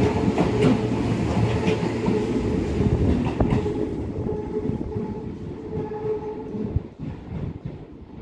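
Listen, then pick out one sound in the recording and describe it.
A train rumbles past along the tracks and fades into the distance.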